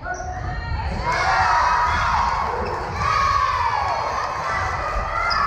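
Girls shout a cheer together in a huddle.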